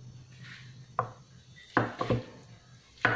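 A knife chops through food onto a wooden cutting board with sharp knocks.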